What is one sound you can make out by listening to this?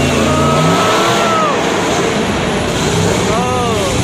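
Metal crunches as a heavy truck crushes cars.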